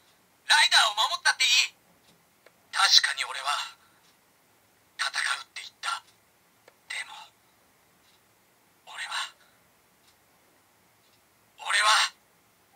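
A toy belt plays short, loud recorded voice calls through a small tinny speaker, with pauses between them.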